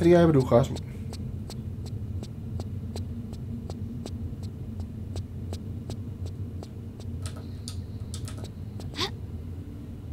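Quick footsteps tap on a stone floor.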